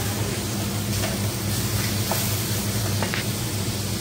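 A spoon scrapes and stirs food in a metal pan.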